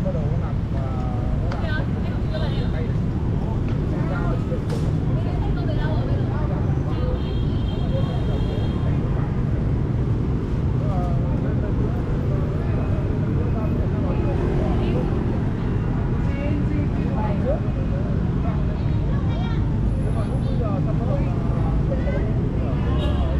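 Motorbike engines hum and pass in steady street traffic.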